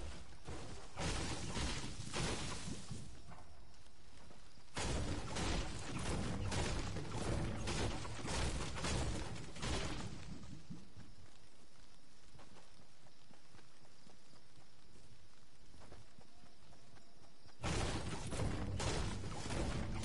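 A pickaxe strikes a tree with repeated knocks.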